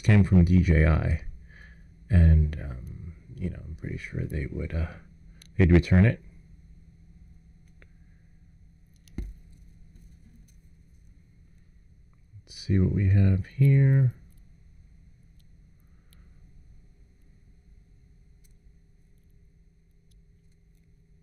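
Small plastic parts click softly as they are pressed together.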